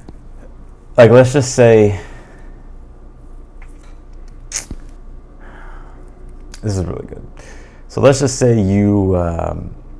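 A young man speaks with animation into a close microphone, pausing between phrases.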